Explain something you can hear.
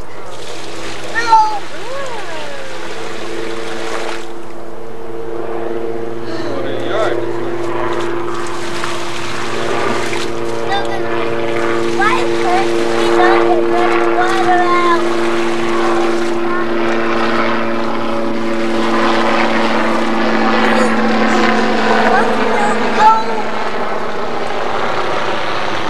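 Young children splash in the water.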